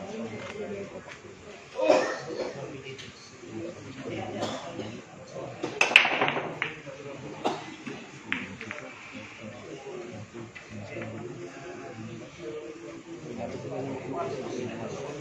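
A crowd of men chatters in the background.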